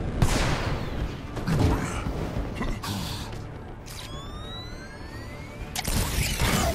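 Jet thrusters roar and whoosh in bursts.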